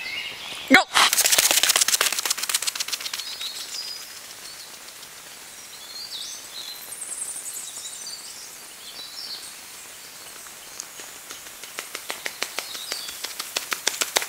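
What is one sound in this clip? Running footsteps crunch quickly on a gravel path.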